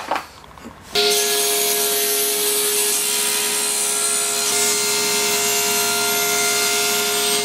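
A table saw runs with a steady whine.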